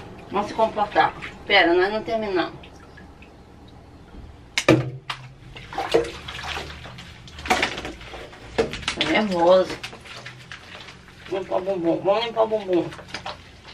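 Water splashes as a dog is washed.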